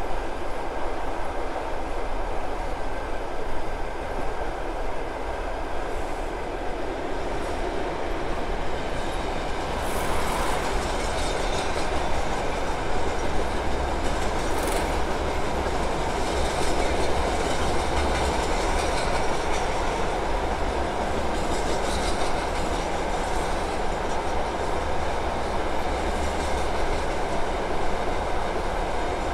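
A passenger train rumbles steadily along the rails at speed.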